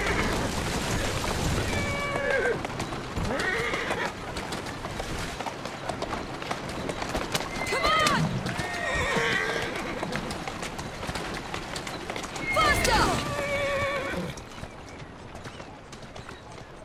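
Horse hooves clatter on cobblestones.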